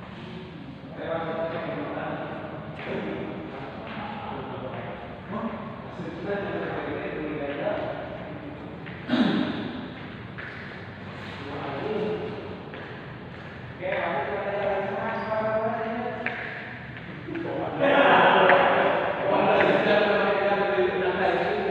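Men talk and call out in an echoing hall.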